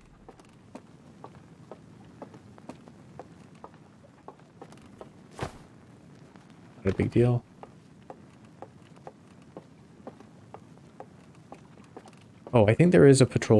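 Footsteps thud softly on wooden stairs and planks.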